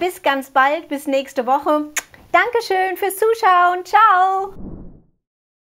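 A middle-aged woman speaks cheerfully and animatedly into a close microphone.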